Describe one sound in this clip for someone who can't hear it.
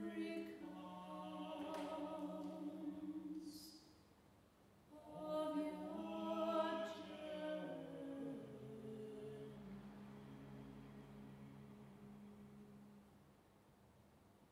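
A woman sings into a microphone in a large echoing hall.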